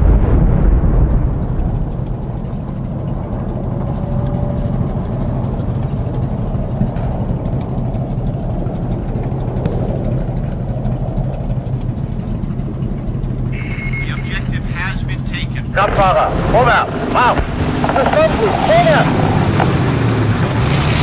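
A tank engine rumbles steadily close by.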